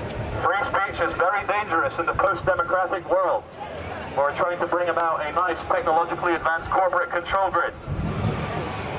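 A man shouts loudly through a megaphone.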